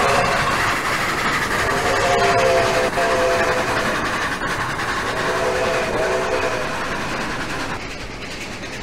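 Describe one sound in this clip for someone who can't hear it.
A steam locomotive chugs past close by.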